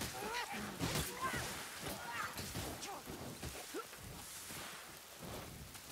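Weapons strike and slash in a close fight.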